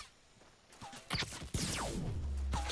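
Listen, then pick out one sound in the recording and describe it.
A pickaxe whooshes through the air and strikes with a sharp crack.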